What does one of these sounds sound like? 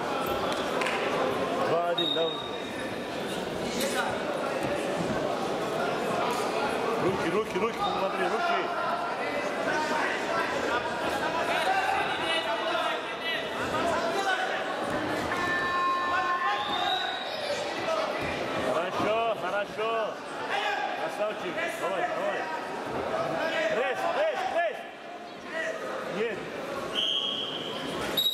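A crowd chatters and shouts throughout a large echoing hall.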